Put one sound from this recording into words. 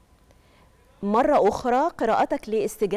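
A woman speaks calmly and clearly into a microphone.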